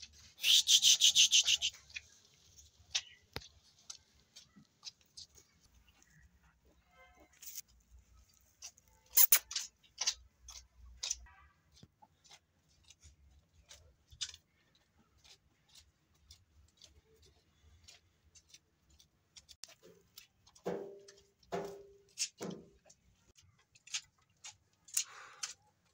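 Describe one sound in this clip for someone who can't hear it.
A calf suckles noisily, with wet sucking and smacking sounds.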